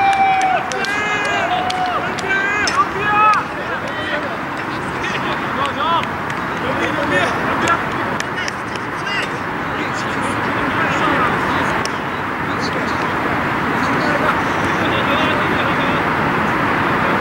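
Players shout to each other across an open outdoor field.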